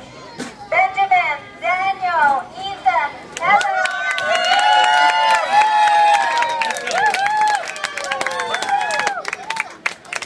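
A young boy speaks loudly through a megaphone.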